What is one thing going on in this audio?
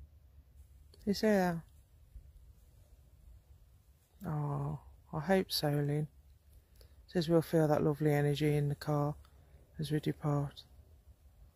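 A person speaks slowly and quietly in short phrases, close by.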